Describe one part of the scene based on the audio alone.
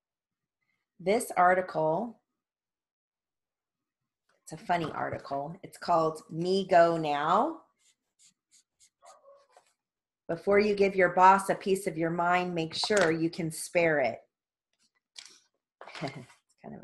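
A woman speaks calmly and clearly close to a microphone, in short phrases with pauses.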